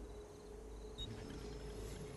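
A short electronic blip sounds as a menu choice is made.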